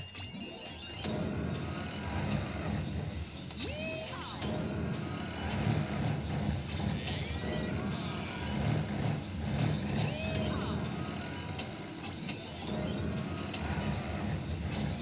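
Electronic pinball music plays steadily.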